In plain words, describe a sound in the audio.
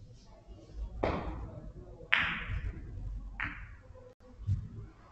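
Billiard balls thump against the table's cushions.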